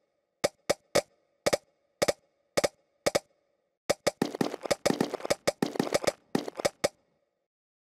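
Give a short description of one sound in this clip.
Short, sharp popping sounds come one after another, faster and busier toward the end.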